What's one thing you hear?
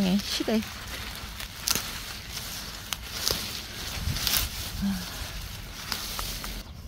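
Leaves and dry grass rustle as someone brushes through plants.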